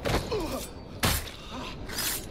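A heavy thud sounds as a body hits the floor.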